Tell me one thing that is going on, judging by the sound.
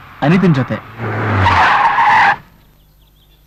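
A car drives up and comes to a stop.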